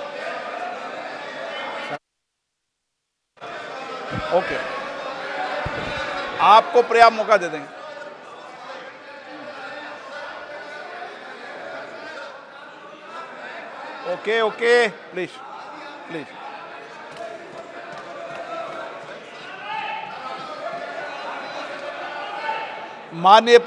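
A large crowd murmurs and cheers in a large echoing hall.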